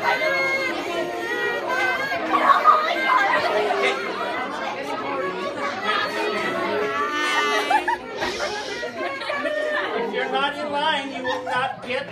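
A crowd of teenagers chatters loudly all around.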